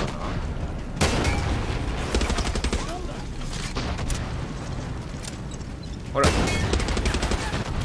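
A rocket launcher fires with a loud whooshing blast.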